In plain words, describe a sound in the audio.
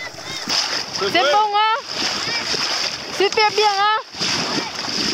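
A child calls out loudly from a nearby sailing boat.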